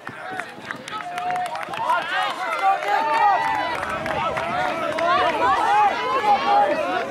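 A crowd of spectators cheers and shouts outdoors, growing louder.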